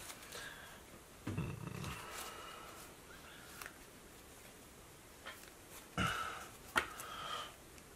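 Plastic card sleeves rustle as a deck is shuffled.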